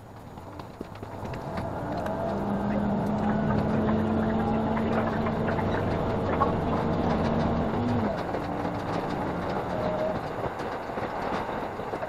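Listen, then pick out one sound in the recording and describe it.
A train's engine hums louder as the train pulls away.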